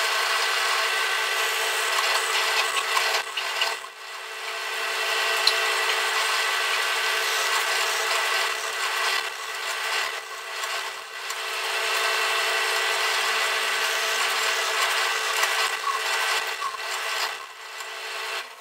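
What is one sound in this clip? A drill bit bores into wood.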